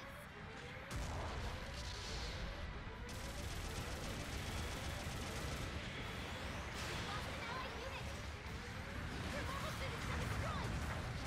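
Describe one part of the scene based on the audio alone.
A jet thruster roars with a deep, steady rumble.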